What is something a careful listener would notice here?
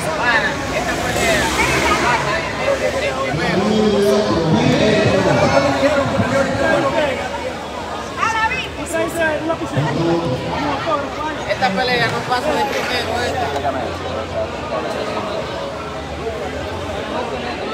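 A crowd of people chatters in a large indoor hall.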